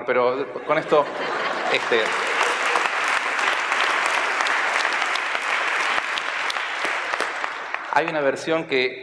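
A large audience claps and cheers in a big hall.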